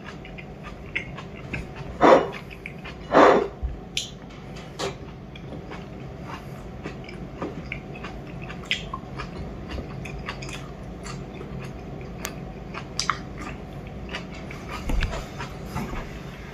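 A fork scrapes and clinks on a plate.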